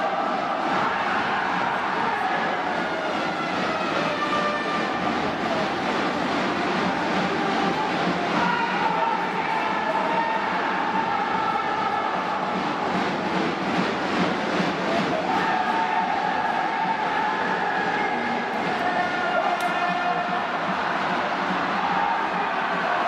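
A large crowd chants and cheers loudly in an echoing stadium.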